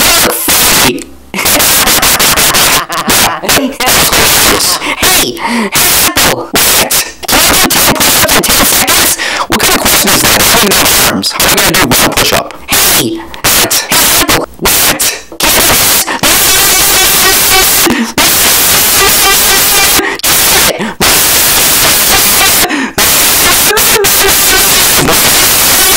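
A cartoonish high-pitched male voice talks and cackles with animation.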